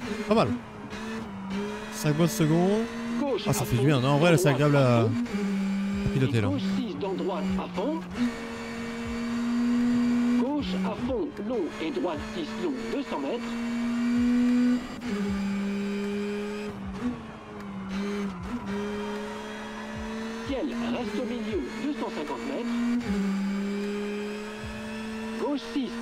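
A car engine drones steadily, its pitch rising and dropping with gear changes.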